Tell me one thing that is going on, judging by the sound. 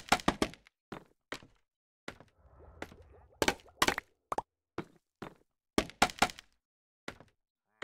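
Blocks are placed with short, sharp clicks and thuds in quick bursts.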